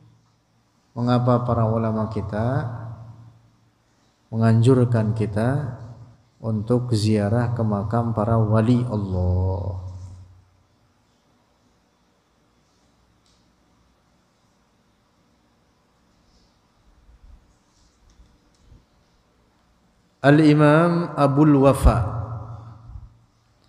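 A man chants in a melodic voice close to a microphone, in phrases with pauses.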